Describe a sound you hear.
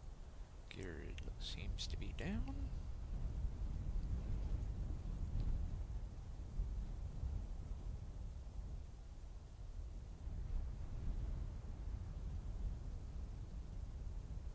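A twin-engine jet fighter roars with a low rumble as it flies past.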